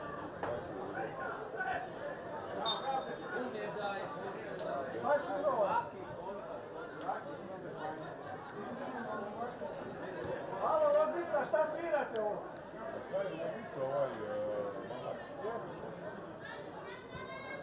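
A crowd of spectators chatters and murmurs nearby outdoors.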